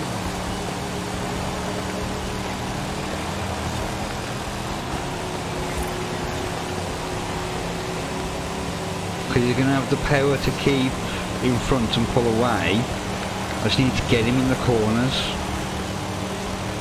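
A car engine drones steadily at high revs.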